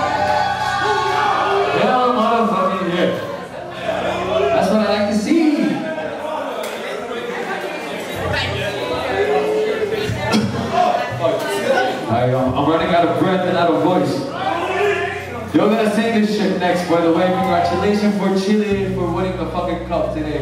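A nu metal band plays live with distorted electric guitars and drums.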